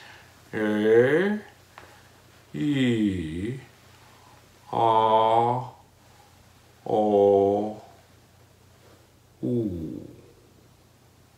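A man sings short, held vocal notes close by, with pauses between them.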